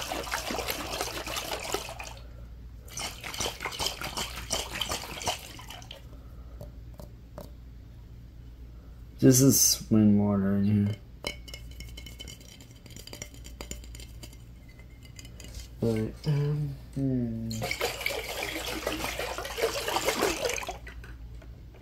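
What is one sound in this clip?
Fingernails tap and scratch quickly on a glass jar close to a microphone.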